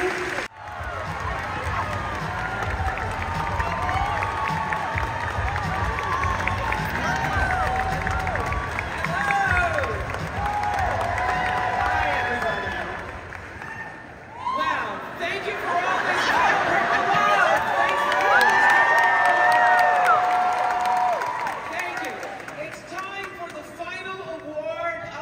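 A large crowd cheers, screams and whoops loudly in a big echoing hall.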